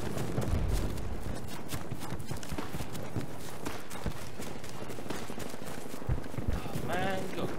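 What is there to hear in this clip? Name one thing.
Gunfire pops and cracks repeatedly in the distance.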